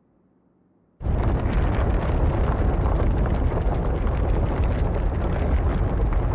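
A deep, loud rumbling starts suddenly and keeps on, like a building shaking.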